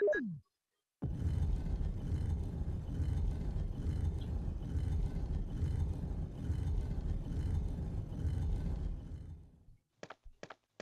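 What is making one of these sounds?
A heavy stone statue grinds and rumbles as it turns.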